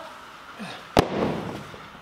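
A weight thuds onto a hard floor.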